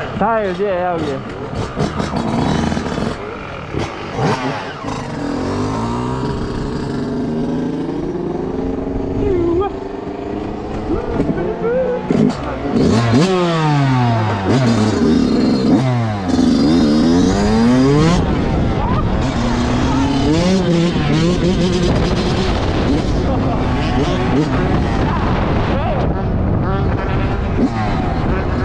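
A dirt bike engine revs loudly, its pitch rising and falling as it speeds up and slows down.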